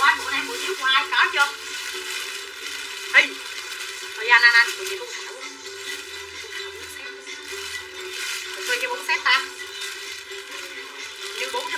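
A young woman speaks with animation close by.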